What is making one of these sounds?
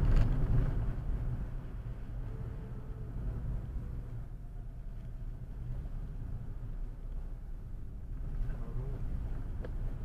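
Tyres roll on a wet road.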